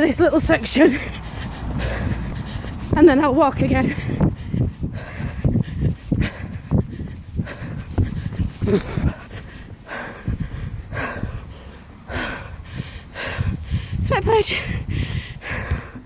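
A middle-aged woman talks breathlessly and with animation close to a phone microphone.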